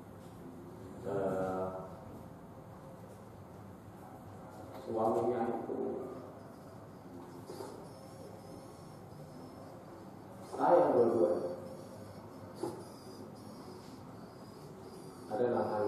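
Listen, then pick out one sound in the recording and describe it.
A middle-aged man speaks calmly into a microphone in short phrases with long pauses.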